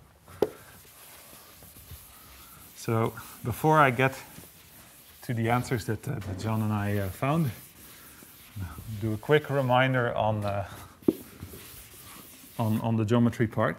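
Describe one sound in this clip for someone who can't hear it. A board eraser rubs across a board.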